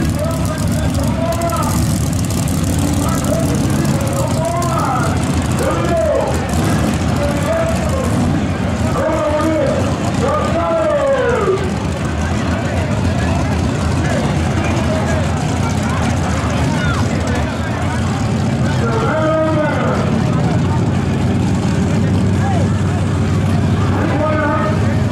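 A race car engine rumbles loudly nearby.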